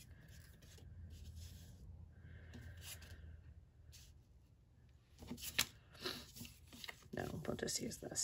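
Paper pieces rustle and slide across a flat surface.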